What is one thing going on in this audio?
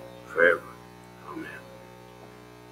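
An elderly man speaks briefly and calmly into a microphone.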